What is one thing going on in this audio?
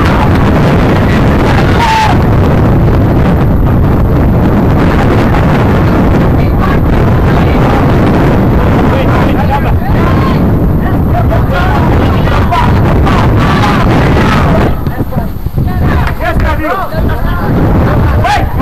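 Wind blows hard across an open field outdoors.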